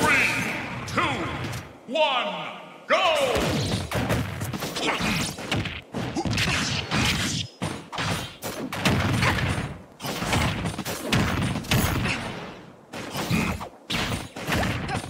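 Video game fight sounds of hits, slashes and blasts ring out rapidly.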